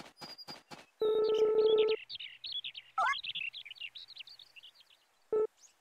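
Quick high chirping blips chatter along with a line of dialogue.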